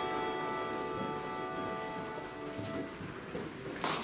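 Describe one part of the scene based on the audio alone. Instruments hold a final chord that fades away in a large echoing hall.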